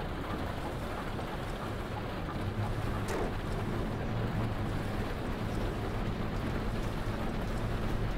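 Rain patters on a windscreen.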